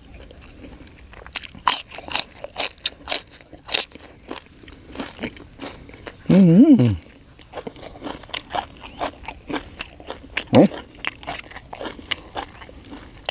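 A man chews and slurps food loudly, close up.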